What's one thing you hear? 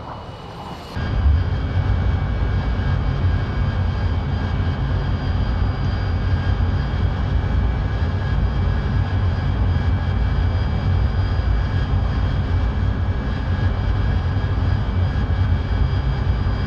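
A jet engine roars steadily, heard close up.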